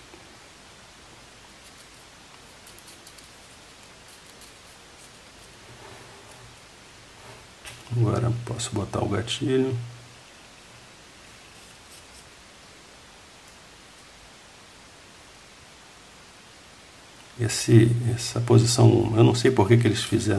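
Small metal parts click and scrape together as they are screwed by hand.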